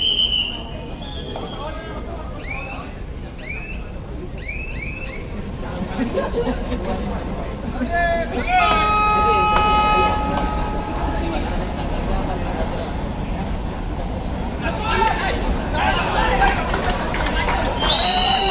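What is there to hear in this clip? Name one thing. A crowd of spectators murmurs and cheers in a large echoing hall.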